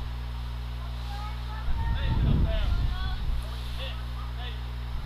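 Softball players call out to one another in the distance across an open field.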